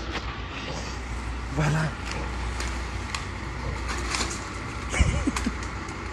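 Bags of rubbish thump as they are tossed into a garbage truck.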